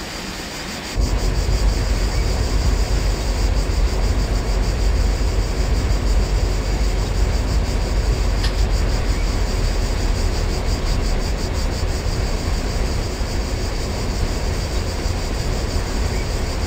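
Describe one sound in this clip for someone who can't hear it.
A train's wheels clatter rhythmically over rail joints.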